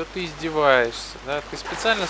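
Water splashes around a man wading.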